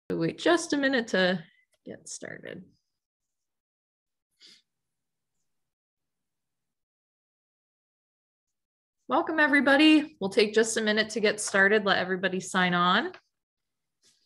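A young woman speaks calmly and closely through an online call microphone.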